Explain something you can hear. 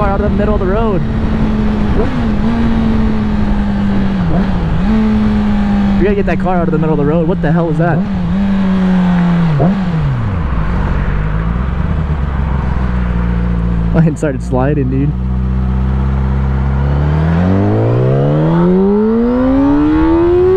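A motorcycle engine hums steadily, drops to a low idle, then revs up as it speeds away.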